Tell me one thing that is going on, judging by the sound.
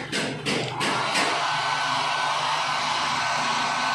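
A hair dryer blows with a steady whirring roar.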